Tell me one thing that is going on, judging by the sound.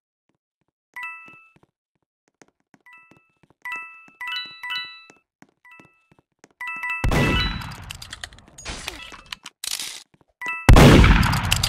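Short bright chimes ring out as coins are picked up.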